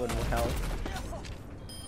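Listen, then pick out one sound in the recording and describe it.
Explosions boom loudly.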